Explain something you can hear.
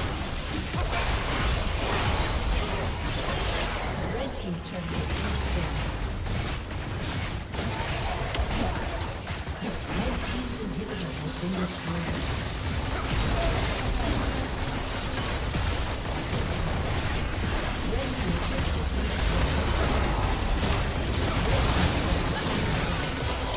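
Magic blasts and clashing hits burst rapidly in a busy video game battle.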